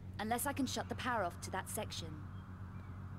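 A young woman speaks calmly and clearly.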